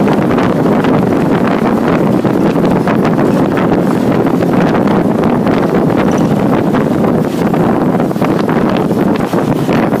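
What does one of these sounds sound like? Traffic rumbles steadily along a nearby road.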